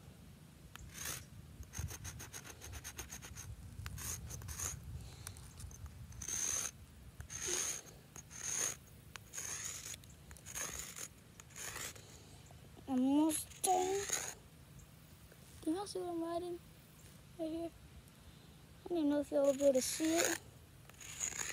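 Chalk scrapes on pavement in short strokes.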